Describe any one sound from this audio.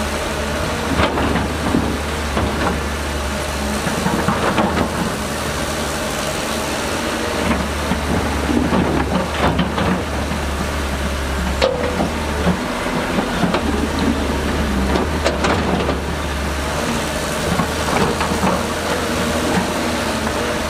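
Mud and clods thud and scrape under an excavator bucket.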